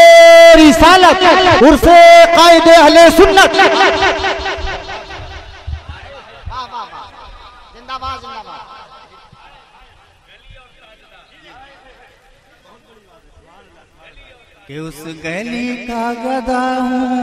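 A young man sings loudly through a microphone in a ringing hall.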